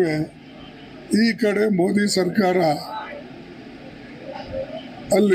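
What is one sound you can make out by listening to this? An elderly man speaks emphatically into a microphone.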